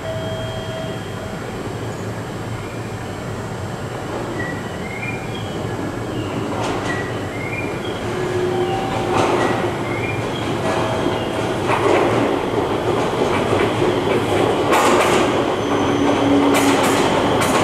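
A train rumbles slowly into the station, growing louder as it nears.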